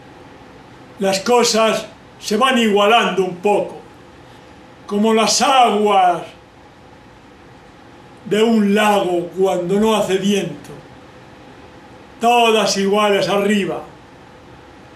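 An elderly man sings loudly in short phrases, close by.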